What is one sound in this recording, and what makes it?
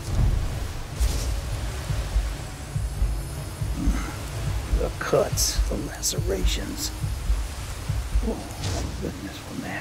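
A magic spell crackles and shimmers in bursts.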